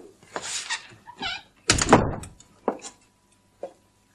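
A door slams shut.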